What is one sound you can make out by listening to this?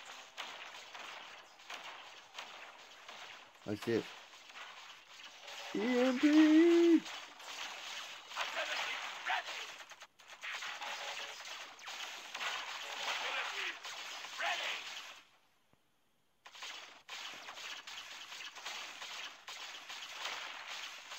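Laser blasts zap.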